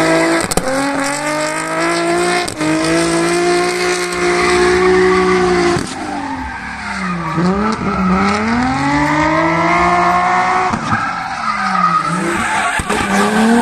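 Tyres screech on the track.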